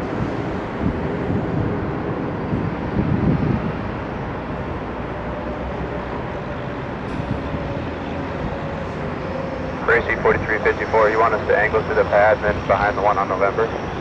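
A jet airliner's engines roar loudly as it comes in to land.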